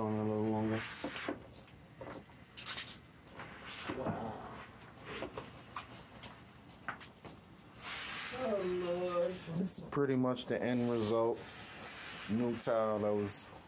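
A steam mop slides and scrubs across a tiled floor.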